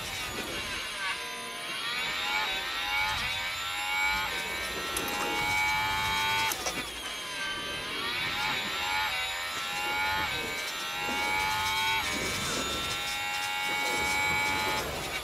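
A racing car engine screams, rising in pitch as it speeds up and dropping sharply at each gear change.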